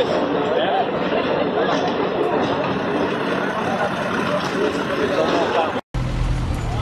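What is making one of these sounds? A crowd of men and women talks and murmurs outdoors.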